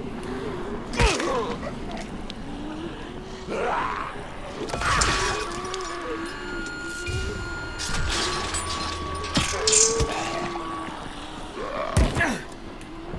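A blunt weapon thuds heavily against a body.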